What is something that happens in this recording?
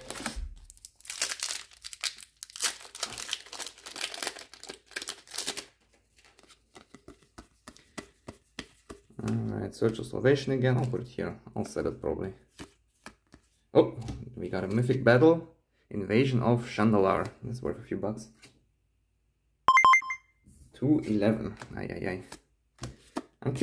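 Trading cards rustle and flick as they are sorted by hand.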